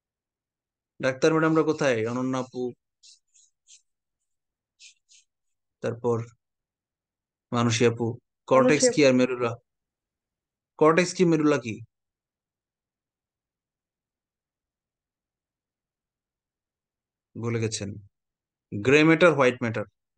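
A man speaks calmly into a microphone, in short phrases with pauses.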